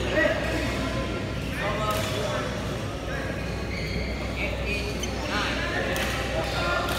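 People chatter in the background of a large echoing hall.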